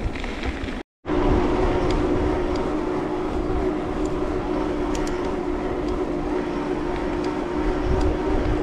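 Bicycle tyres hum steadily on smooth pavement.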